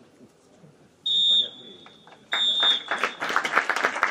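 A referee blows two sharp whistle blasts outdoors.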